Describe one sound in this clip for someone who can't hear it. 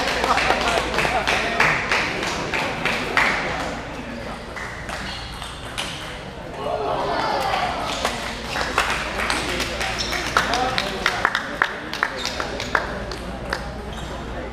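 Table tennis balls click sharply off paddles and tables in a large echoing hall.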